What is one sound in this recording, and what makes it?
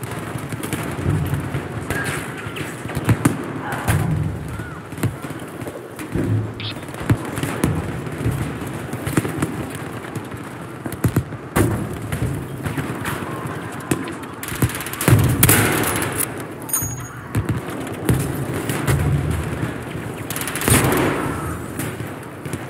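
Explosions boom and rumble with a deep roar.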